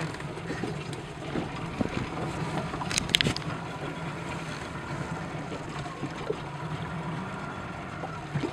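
Small waves slap against the side of a boat.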